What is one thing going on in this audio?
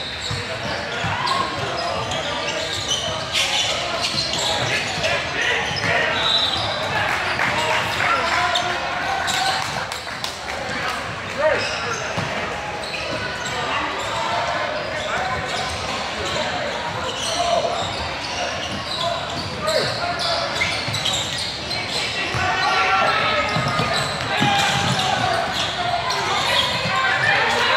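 Voices and shouts echo through a large hall.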